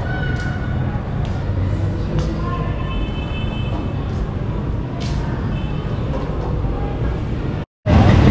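Footsteps tap on a hard floor, coming closer.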